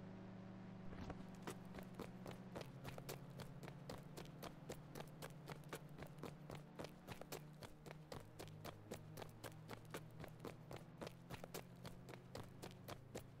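Footsteps run on pavement.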